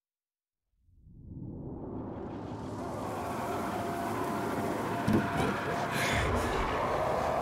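Wind rustles through trees outdoors.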